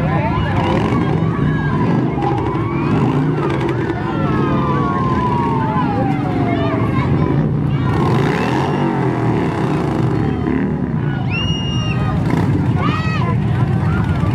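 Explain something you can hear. Motorcycle engines rumble steadily.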